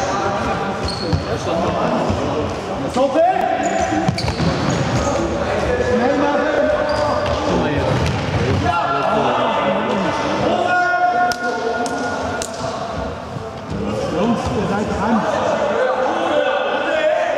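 A ball thuds when kicked.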